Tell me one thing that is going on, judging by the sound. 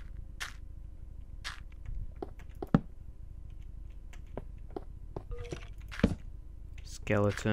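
Footsteps tap lightly on stone.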